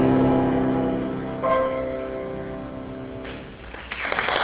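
A choir sings a sustained chord and breaks off.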